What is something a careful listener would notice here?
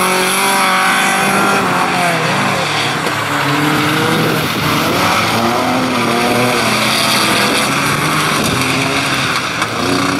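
Tyres hiss on a wet track.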